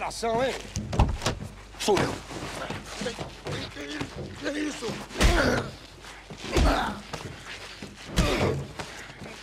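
Punches thud heavily during a scuffle.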